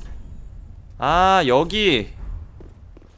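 A young man exclaims loudly into a microphone with a drawn-out, rising and falling cry.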